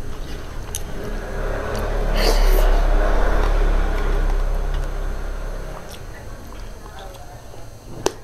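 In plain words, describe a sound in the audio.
A woman chews food loudly close to a microphone.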